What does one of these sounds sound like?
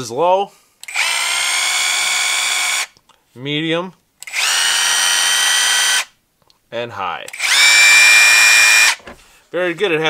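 A cordless driver's motor whirs in short, steady bursts.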